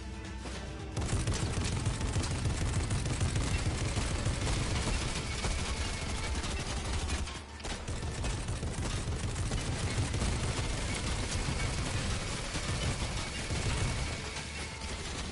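A vehicle engine rumbles loudly, moving fast.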